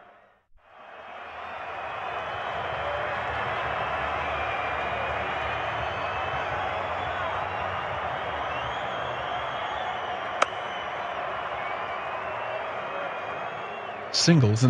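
A stadium crowd cheers and roars.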